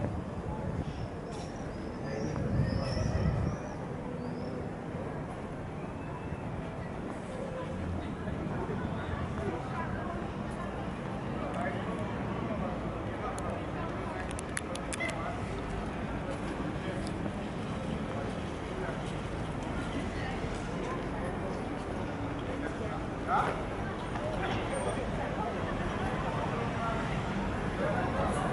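City traffic hums steadily in the distance.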